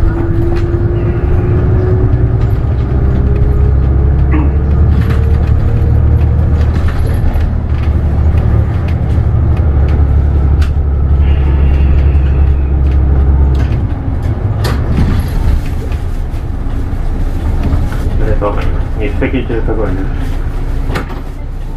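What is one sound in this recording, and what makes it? The bus body rattles and clicks over the road.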